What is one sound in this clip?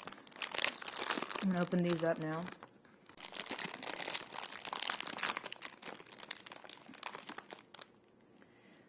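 Plastic bags crinkle and rustle as hands handle them up close.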